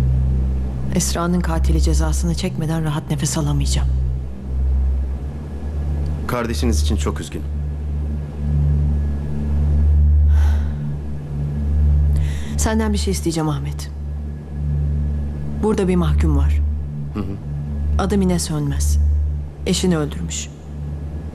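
A young woman speaks quietly and seriously, close by.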